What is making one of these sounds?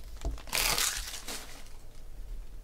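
Foil wrapping crinkles.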